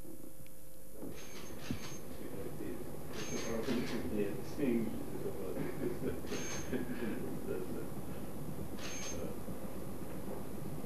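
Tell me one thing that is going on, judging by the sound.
An elderly man speaks quietly nearby.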